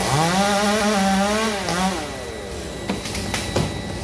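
A cut branch crashes down through leaves.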